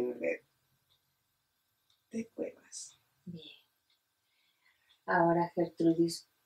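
A woman speaks softly and close by, in short bursts with pauses.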